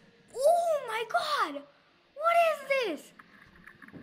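A young boy exclaims loudly with a rising and falling voice through an online call.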